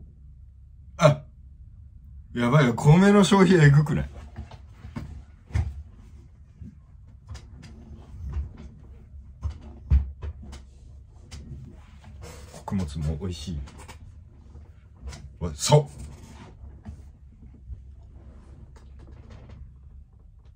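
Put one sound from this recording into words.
A young man talks and laughs close to a microphone, with animation.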